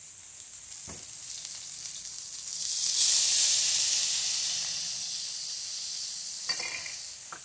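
Food sizzles loudly in a hot wok, surging suddenly and then slowly settling.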